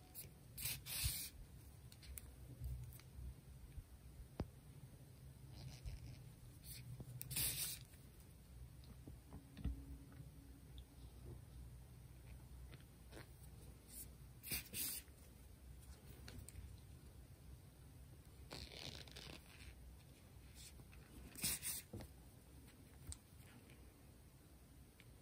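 Yarn rustles softly as a needle draws it through a crocheted toy.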